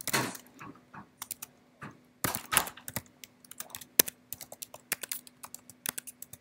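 Keys clatter as someone types quickly on a keyboard.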